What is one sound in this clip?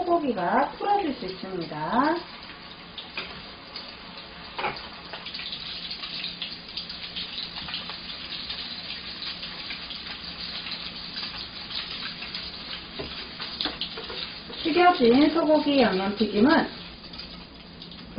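Oil sizzles and crackles steadily as food deep-fries.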